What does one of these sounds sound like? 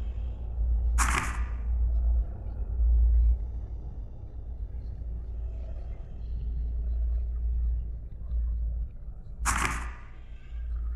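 A short whoosh sounds as a page turns.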